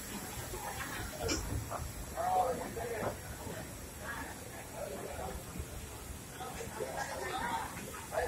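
Several adults talk nearby on an open platform.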